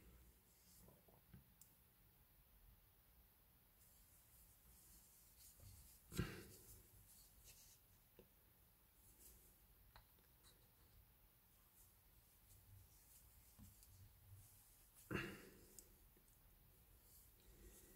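Cloth gloves rustle faintly against a pipe.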